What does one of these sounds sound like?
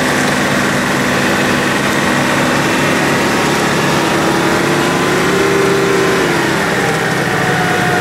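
An off-road engine growls and revs loudly close by.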